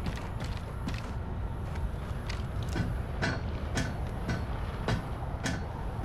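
Armoured boots clank on metal ladder rungs.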